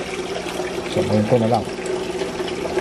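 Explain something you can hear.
Water sloshes gently as a hand moves inside a small glass tank.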